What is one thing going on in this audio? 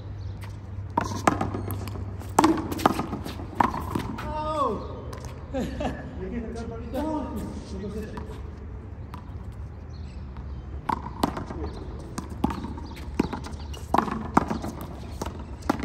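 A rubber ball bounces on pavement.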